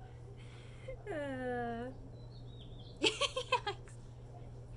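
A young woman speaks briefly and playfully, close by.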